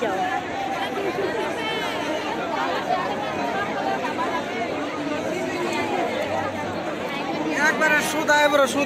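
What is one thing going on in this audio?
A crowd of people chatters all around, outdoors.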